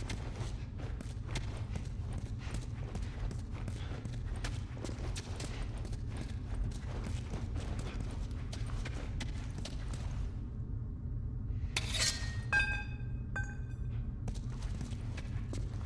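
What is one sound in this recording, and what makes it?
Footsteps shuffle steadily on a hard floor.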